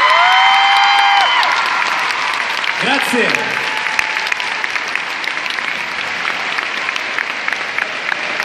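A large crowd cheers and claps in a big echoing arena.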